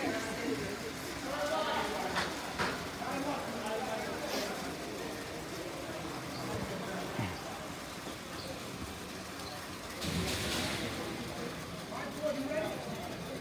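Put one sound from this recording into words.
Skate wheels roll and scrape on a hard rink floor.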